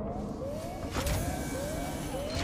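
A sliding metal door hisses open.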